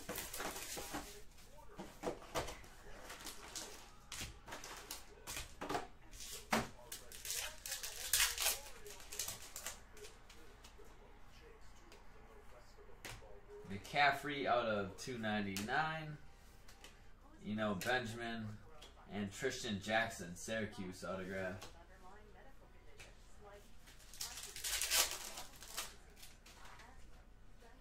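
Foil wrappers crinkle and tear close by.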